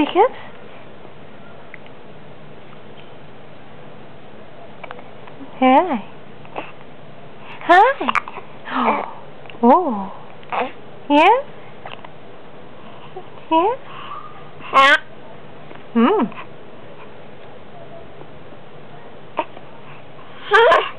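A baby coos and squeals happily in short bursts close by.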